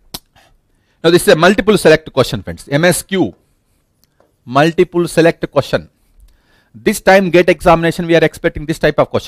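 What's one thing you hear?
A man lectures with animation through a headset microphone.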